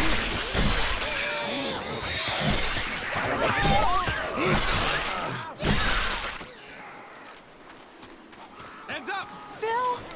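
Blows from a melee weapon thud and splatter.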